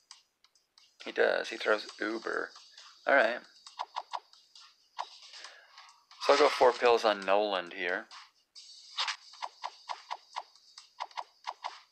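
Electronic game sound effects chime and whoosh.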